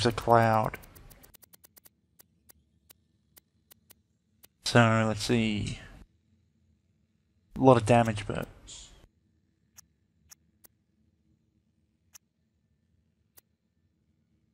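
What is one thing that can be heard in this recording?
A game menu ticks softly as selections change.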